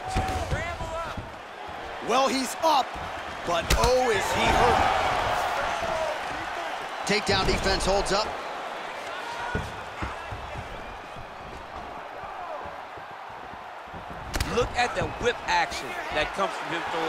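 Punches and kicks land on bodies with heavy thuds.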